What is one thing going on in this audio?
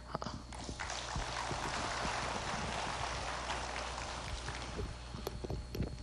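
An audience claps.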